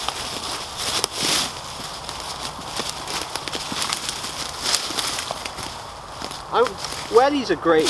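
Dry leaves and twigs crunch underfoot.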